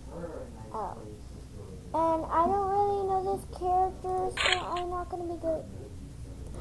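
A young girl hums a tune close to the microphone.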